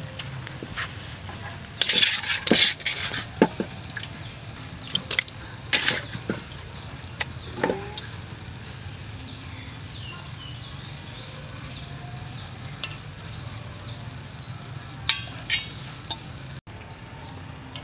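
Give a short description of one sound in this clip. Hands squelch and rub wet chicken skin.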